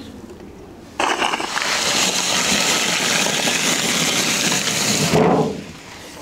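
A heavy block scrapes as it slides out of a metal mold.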